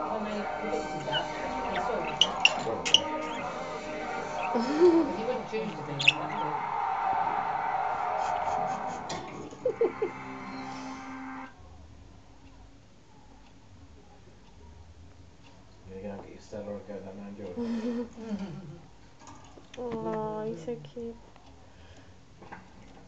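A budgie chirps and warbles close by.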